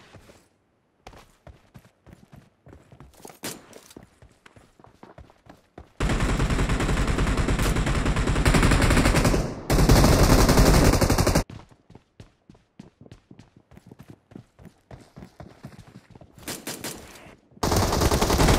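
Footsteps run quickly over hard floors.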